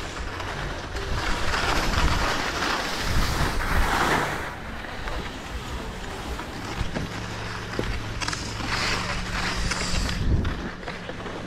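A snowboard scrapes and hisses across the snow.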